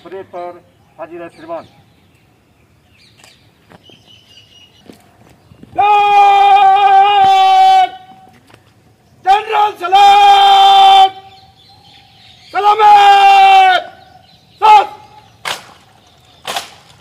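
A man shouts long, drawn-out parade commands outdoors.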